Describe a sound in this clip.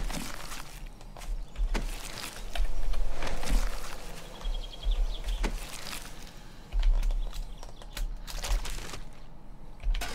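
Heavy blows thud wetly against a body.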